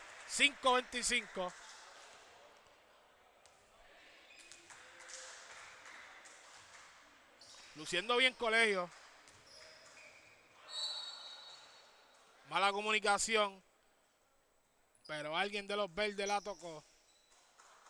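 Basketball shoes squeak sharply on an indoor court in short bursts.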